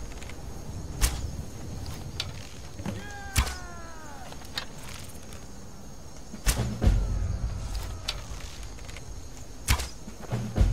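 A bowstring twangs sharply as an arrow is loosed.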